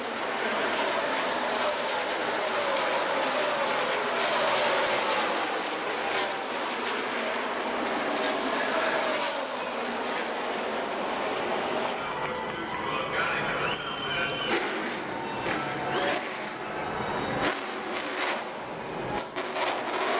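Race cars roar past on the track.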